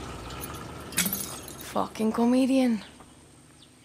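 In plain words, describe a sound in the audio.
A woman speaks curtly up close.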